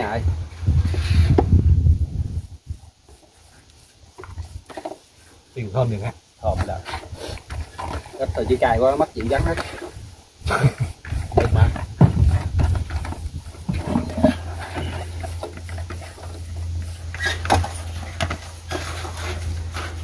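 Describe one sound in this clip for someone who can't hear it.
Wet meat squelches as hands knead it in a bowl.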